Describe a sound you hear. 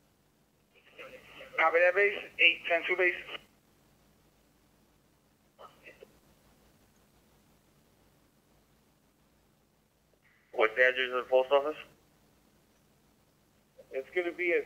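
A radio scanner plays short bursts of transmitted speech through its small speaker.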